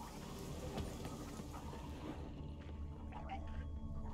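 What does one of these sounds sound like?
Footsteps run quickly across wooden boards.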